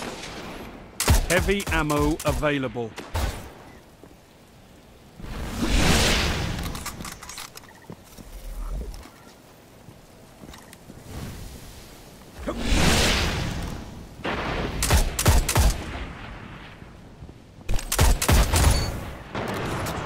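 A sniper rifle fires sharp shots.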